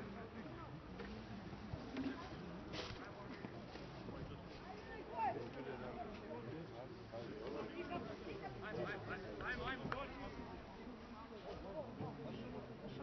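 Young players shout to each other in the distance across an open field.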